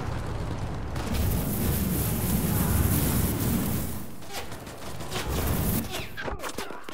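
A flamethrower roars with a rushing blast of fire.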